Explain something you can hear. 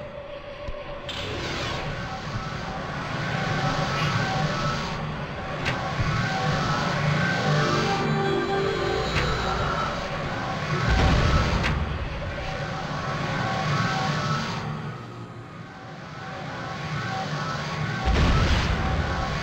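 Magic spells crackle and shimmer as they are cast.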